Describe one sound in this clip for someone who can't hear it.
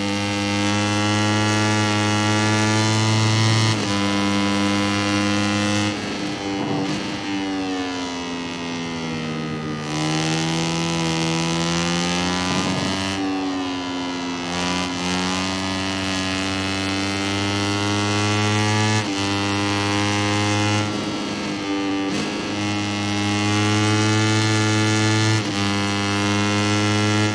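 A motorcycle engine screams at high revs, rising and falling in pitch as it shifts gears and slows for corners.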